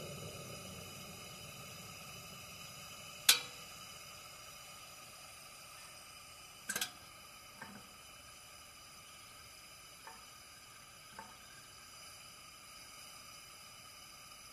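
A kerosene hurricane lantern burns with a soft hiss.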